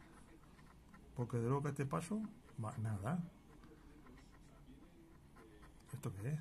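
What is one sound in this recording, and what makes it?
A coin scratches lightly across a card.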